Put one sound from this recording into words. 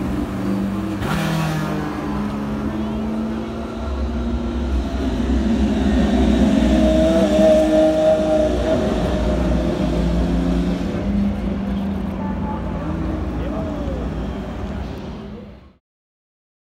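Sports car engines roar loudly as cars speed past one after another.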